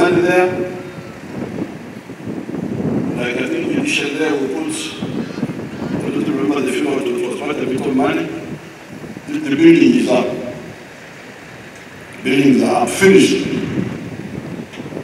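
An older man speaks slowly and firmly through a microphone and loudspeakers outdoors.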